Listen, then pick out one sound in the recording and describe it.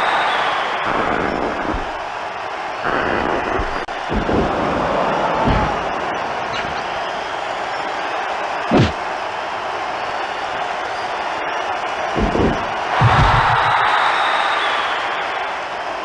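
A large crowd cheers and roars steadily throughout.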